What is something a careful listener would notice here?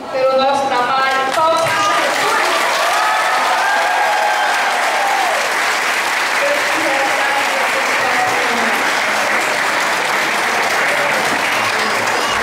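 A group of women sing together loudly.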